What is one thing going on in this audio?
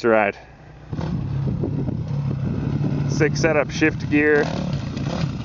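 A dirt bike engine revs and roars nearby.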